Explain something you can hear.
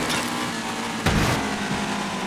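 A car crashes into a barrier with a loud bang.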